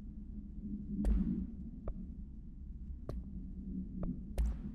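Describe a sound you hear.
Short sharp interface clicks sound several times.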